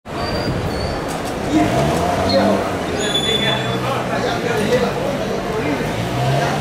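Several adults chat nearby outdoors.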